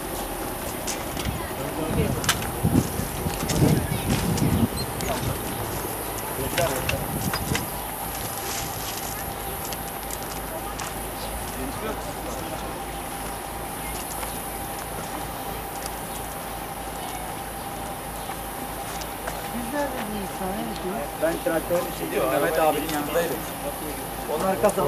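A crowd of men talk over each other nearby, outdoors.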